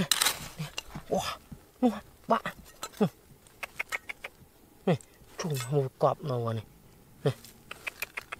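Hands scrape and scatter dry soil and small stones.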